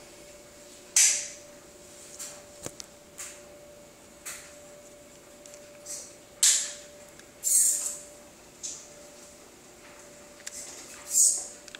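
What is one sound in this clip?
Small tyres of a radio-controlled mobility scooter scrub in short bursts on a concrete floor.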